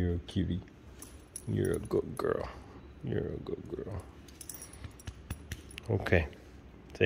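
A metal chain collar jingles as a dog moves.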